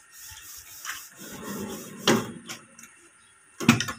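A drawer slides shut on metal runners.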